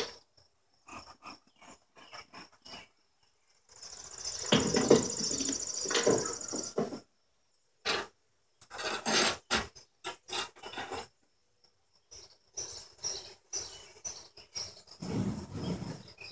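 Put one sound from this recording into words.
Wooden hive frames knock and scrape against a box.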